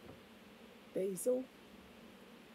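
An older woman speaks briefly and calmly close by.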